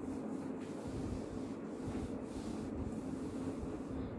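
A cloth wipes across a whiteboard.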